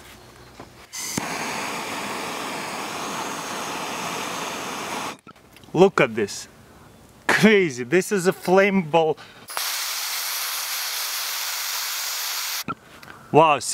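A torch flame roars steadily.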